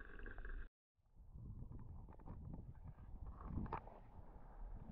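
Water laps gently close by.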